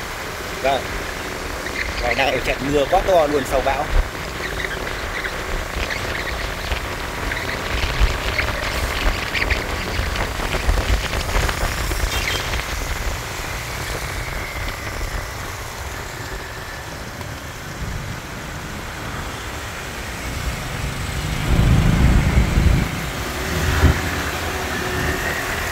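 A motorbike engine hums close by.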